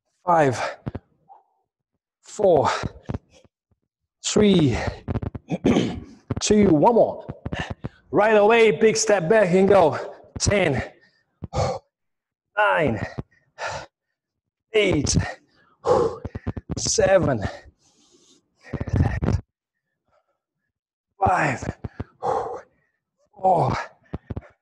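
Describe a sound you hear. A man speaks with energy into a close microphone.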